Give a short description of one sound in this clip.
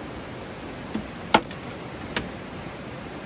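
Bamboo knocks sharply against wood a few times.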